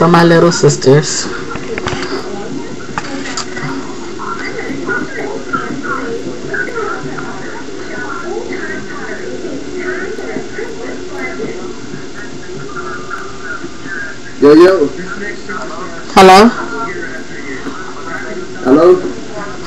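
A man talks through a computer speaker, somewhat muffled.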